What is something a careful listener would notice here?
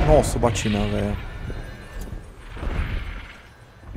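A large dragon's wings beat with heavy whooshes.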